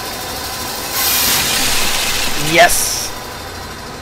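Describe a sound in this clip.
A machine grinds and hisses loudly.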